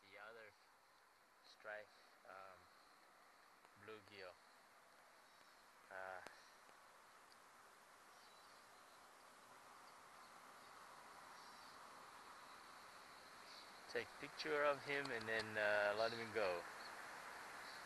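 A man speaks close by, in short calm remarks.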